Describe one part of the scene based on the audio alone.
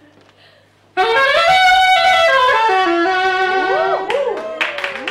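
A saxophone plays a lively tune close by.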